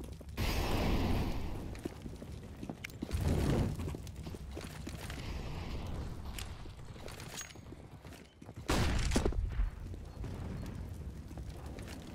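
Rifle shots crack in quick bursts nearby.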